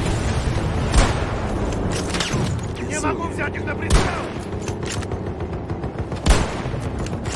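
A sniper rifle fires with a loud, sharp crack.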